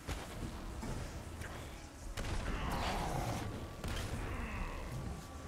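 Heavy punches land with loud crashing thuds.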